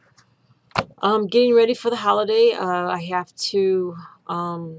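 A middle-aged woman speaks calmly, close to a microphone.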